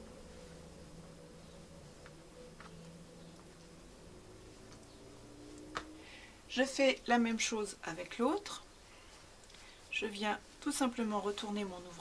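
Soft fabric rustles and brushes as it is handled.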